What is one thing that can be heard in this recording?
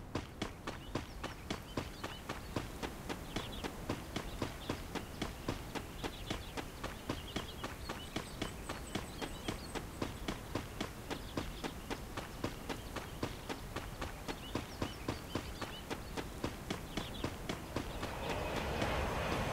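Quick footsteps thud on grass as someone runs.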